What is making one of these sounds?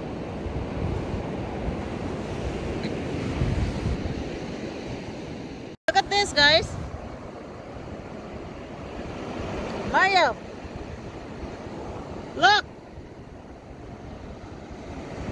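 Gentle waves wash softly over sand nearby.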